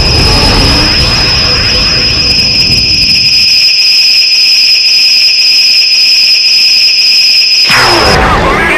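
Energy beams fire with a steady, high electronic whine.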